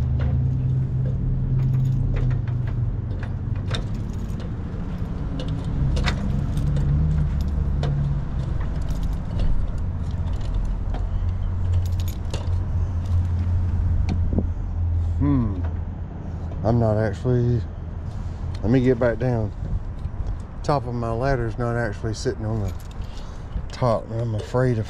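Feet step on ladder rungs with light metallic knocks.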